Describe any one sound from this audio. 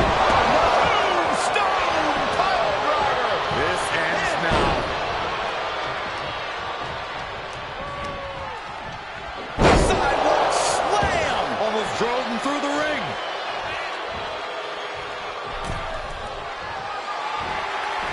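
A large crowd cheers and shouts loudly in an echoing arena.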